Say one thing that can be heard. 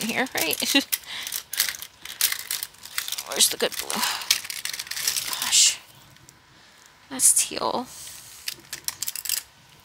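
A plastic pouch crinkles and rustles as hands rummage through it.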